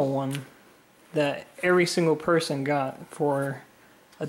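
A plastic comic sleeve crinkles as it is handled.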